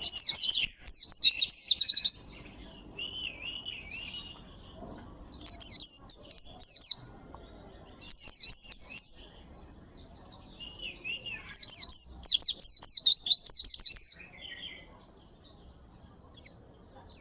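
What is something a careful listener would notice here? A small bird sings loud, rapid, high chirping trills close by in bursts.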